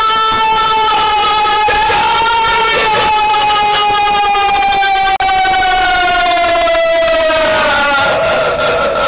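A woman screams in a long, wailing cry that slowly drops in pitch.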